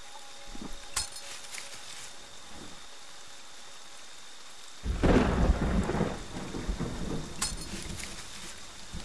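An axe strikes a wooden door with heavy blows.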